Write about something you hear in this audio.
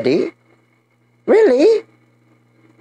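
A young man speaks loudly and animatedly into a close microphone.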